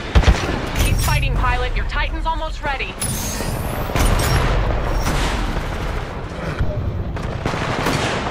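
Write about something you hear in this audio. A heavy gun fires in loud bursts.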